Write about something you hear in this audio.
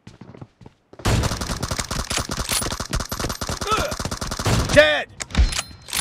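Rapid gunfire blasts loudly and close.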